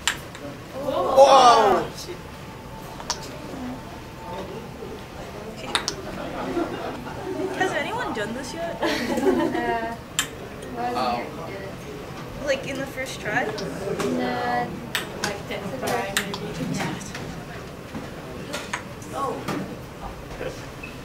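A young woman talks and laughs softly nearby.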